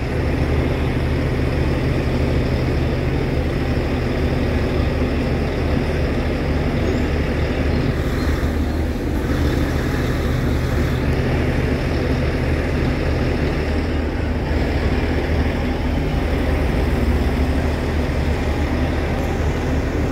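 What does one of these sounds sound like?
Cars drive past on a street nearby.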